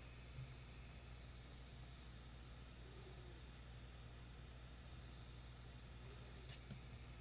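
A glue stick rubs on crocheted yarn.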